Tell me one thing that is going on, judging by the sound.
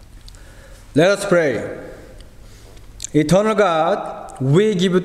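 A man sings a slow chant through a microphone in an echoing room.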